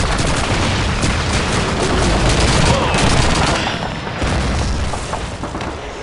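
A submachine gun fires rapid bursts up close.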